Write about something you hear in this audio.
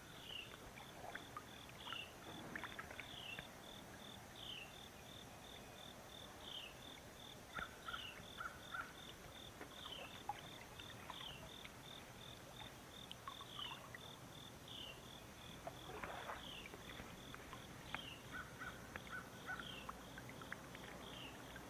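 A fish splashes and thrashes in the water close by.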